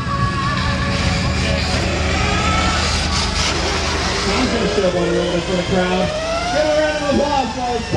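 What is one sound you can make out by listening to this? Small go-kart engines hum and buzz as they drive past.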